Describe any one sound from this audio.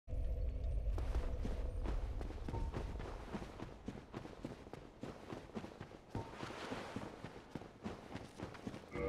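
Armoured footsteps crunch on rocky ground.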